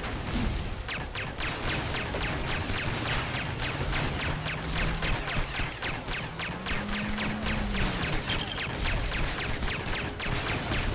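A boat engine roars across the water.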